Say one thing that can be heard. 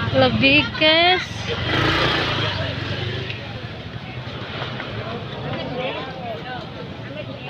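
A motorbike engine rumbles close by as it rides slowly.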